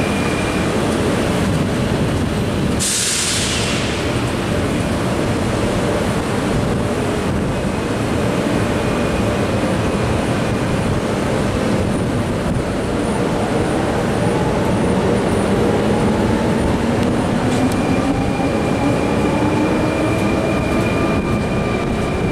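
A train rumbles loudly along the rails close by.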